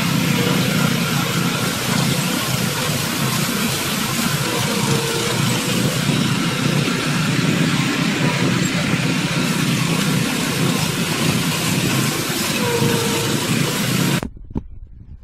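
A small petrol engine drones steadily on a line-striping machine.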